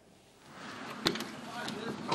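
A truck door latch clicks open.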